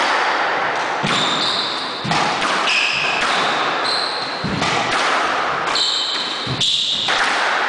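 A squash ball smacks sharply against the walls and racquets in an echoing court.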